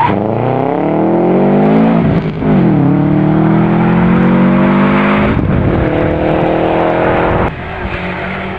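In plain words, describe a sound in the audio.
A rally car engine revs hard and shifts gears as the car speeds past.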